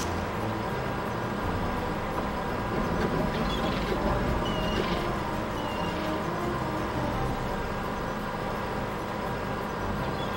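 A loader's diesel engine rumbles steadily as it drives.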